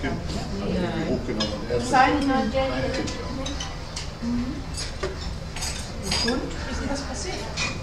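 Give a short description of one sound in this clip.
Men and women chatter on a passing boat.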